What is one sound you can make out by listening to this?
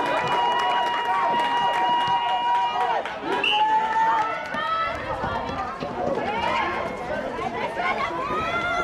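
Young women shout and call to each other across an outdoor court.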